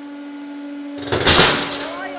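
A steel bearing cracks sharply under heavy pressure.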